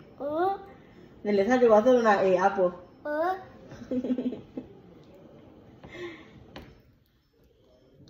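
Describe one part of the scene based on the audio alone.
A young child giggles.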